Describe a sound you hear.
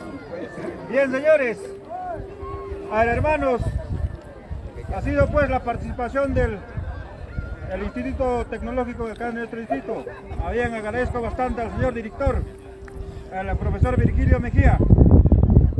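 A man speaks loudly and with animation through a loudspeaker.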